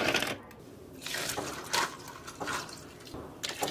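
Milk pours and splashes over ice.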